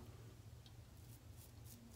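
A razor scrapes across a beard.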